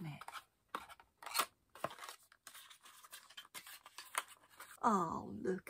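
Fingers tap and rustle on a cardboard box.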